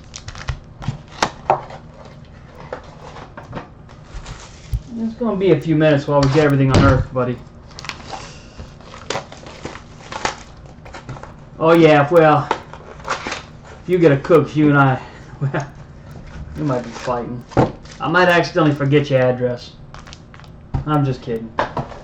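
Small cardboard boxes tap and rustle as hands handle them close by.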